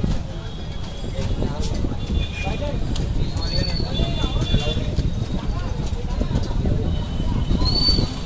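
Fingers crack and peel the shell off a boiled egg.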